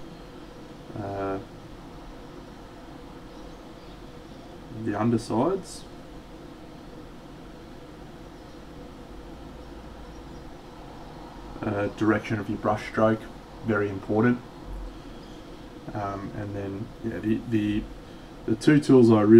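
A man talks calmly and casually into a close microphone.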